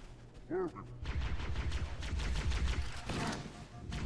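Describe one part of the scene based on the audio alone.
A game explosion booms.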